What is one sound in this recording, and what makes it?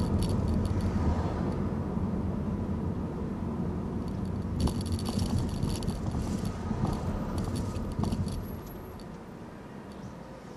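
A car engine hums steadily while driving, then quiets as the car slows.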